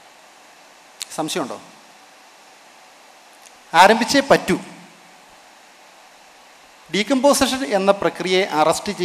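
A man speaks into a microphone in short bursts with pauses, with animation.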